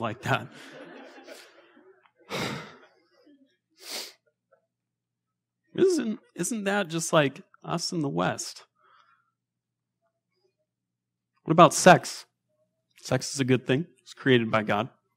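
A man speaks calmly into a microphone, pausing now and then.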